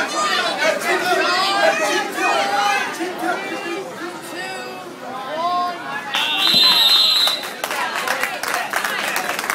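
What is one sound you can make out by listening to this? A crowd of adults shouts and cheers loudly in an echoing hall.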